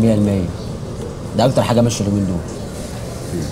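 A second man answers in a low voice.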